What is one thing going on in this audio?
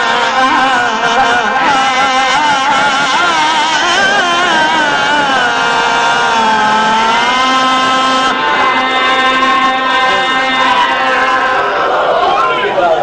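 A man chants in long, drawn-out notes through a loudspeaker.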